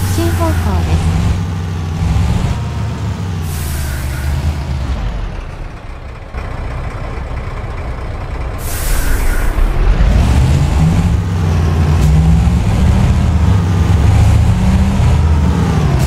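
A heavy truck engine rumbles steadily, growing louder as it speeds up.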